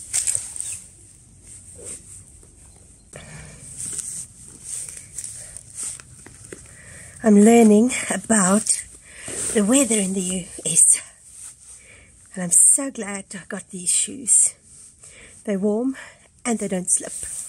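Shoelaces rustle and swish as they are pulled tight and tied.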